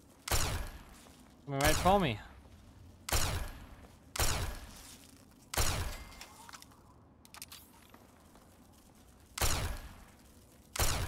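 A heavy energy weapon fires in sharp, booming blasts, again and again.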